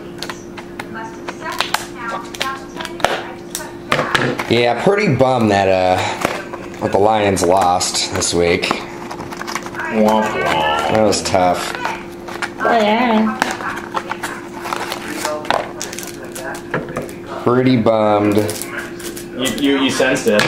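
A foil wrapper crinkles and rustles as it is handled.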